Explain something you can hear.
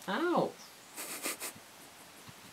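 Fabric rustles as a cat moves over a blanket.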